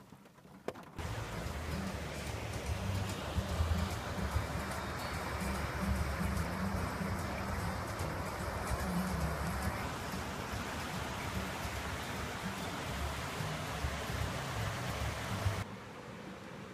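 A river rushes over rocks close by.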